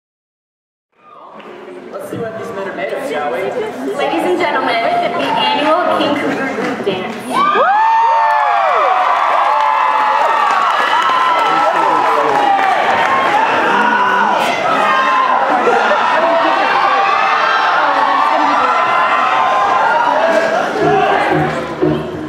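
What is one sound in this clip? A large audience cheers and screams loudly in a big echoing hall.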